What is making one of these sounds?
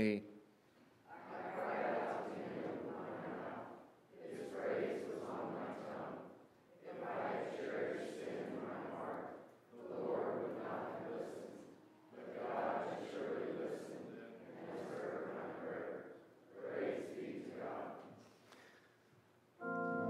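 A woman reads aloud through a microphone in a large echoing hall.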